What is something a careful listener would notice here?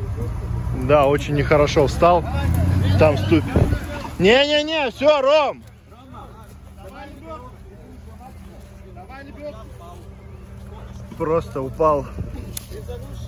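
Men shout nearby outdoors.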